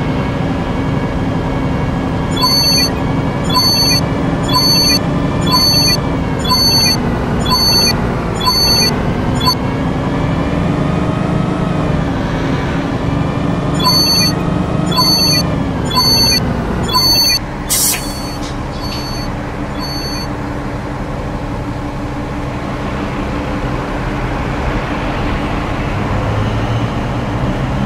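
A bus engine drones, rising and falling in pitch, then settles to a lower hum.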